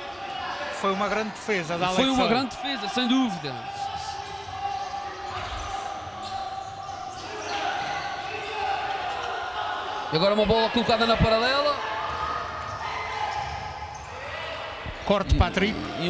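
A ball thuds as players kick it across a hard floor.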